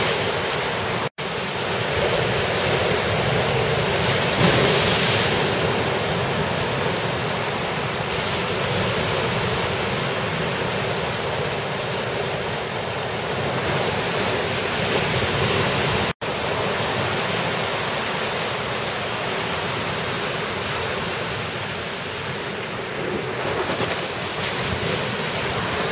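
Ocean waves break and wash steadily outdoors.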